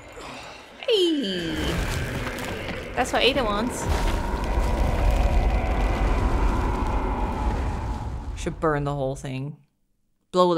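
A deep rumble of crashing rocks roars and then cuts off.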